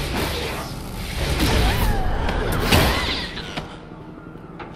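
Magical spells crackle and burst with loud booms.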